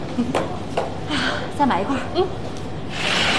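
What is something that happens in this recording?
A young woman laughs softly nearby.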